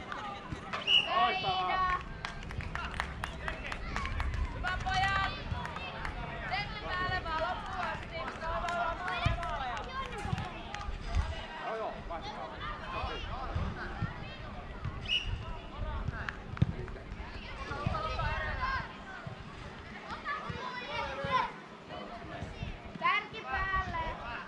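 Young female players shout and call to each other across an open field.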